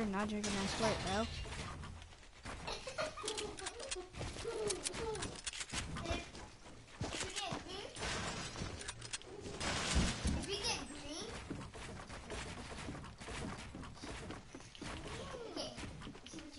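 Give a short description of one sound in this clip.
Building pieces snap into place in quick clicks and thuds.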